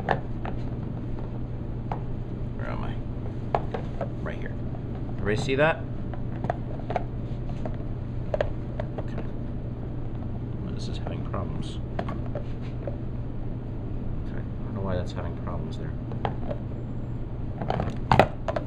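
Plastic pieces click and knock together as they are handled.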